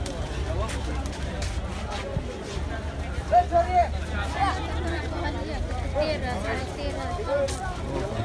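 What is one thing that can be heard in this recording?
A crowd of men and women talks and calls out outdoors.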